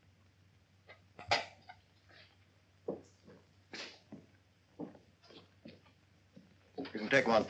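Plates clink as they are set down on a table.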